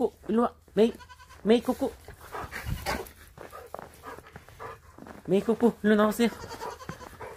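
Young goats bleat loudly and repeatedly close by.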